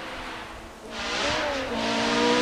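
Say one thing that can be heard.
A rally car engine roars from a distance as the car approaches.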